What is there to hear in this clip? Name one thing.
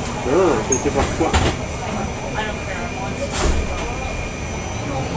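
A car engine and tyres rumble steadily from inside a moving car.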